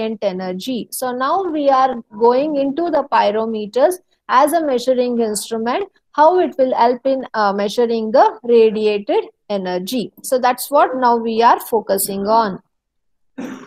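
A young woman speaks steadily and close to a microphone.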